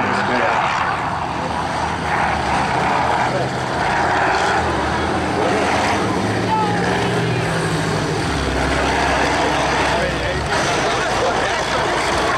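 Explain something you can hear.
Diesel engines of combine harvesters roar as they race.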